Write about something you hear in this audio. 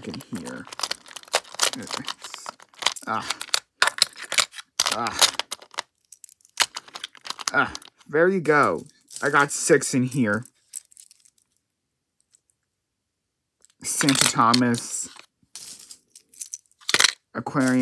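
Small plastic toy trains clatter and click as a hand moves them about in a box.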